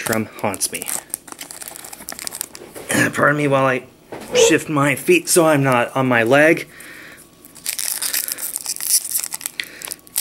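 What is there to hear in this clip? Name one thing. A foil wrapper crinkles and rustles in hands.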